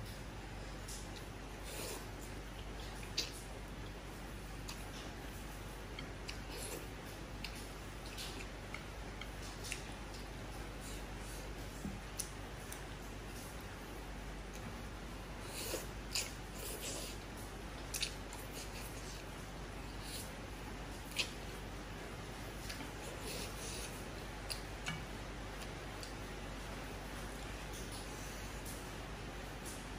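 A woman chews food with wet smacking sounds.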